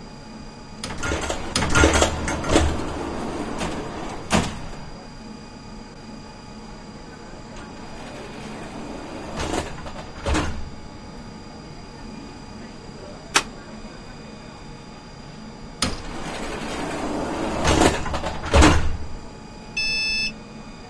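A tram rumbles and clatters along rails.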